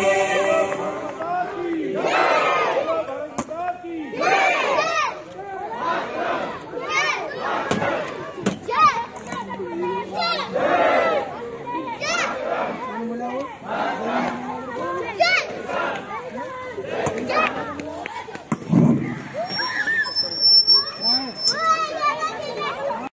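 A crowd of men and women sings together outdoors.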